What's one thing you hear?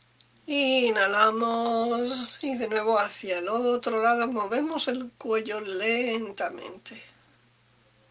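A middle-aged woman speaks calmly and slowly into a microphone close by.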